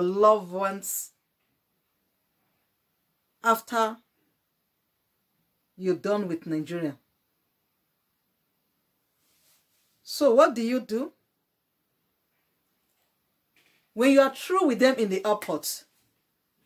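A woman speaks calmly and close by, in short phrases with pauses between them.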